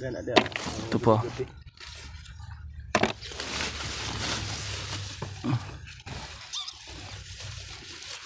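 Leaves and dry grass rustle as a hand pushes through plants.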